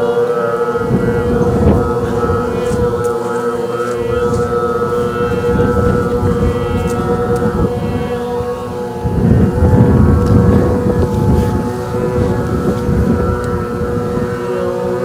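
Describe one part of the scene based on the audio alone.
Wind buffets the air outdoors in gusts.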